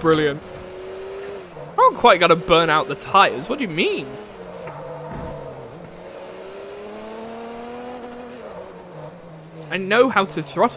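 A racing car engine hums steadily and its pitch rises as it speeds up.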